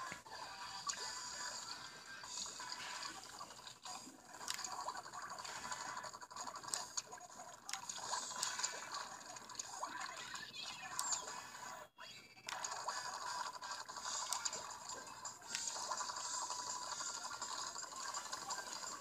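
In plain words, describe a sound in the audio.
Ink guns squirt and splatter in quick bursts.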